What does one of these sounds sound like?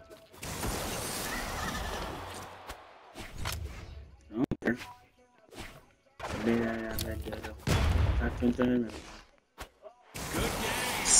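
Cartoon fighters trade blows with sharp hits and whooshes.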